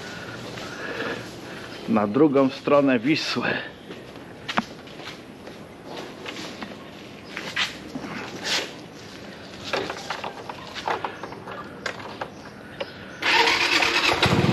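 A scooter rattles over rough, bumpy ground.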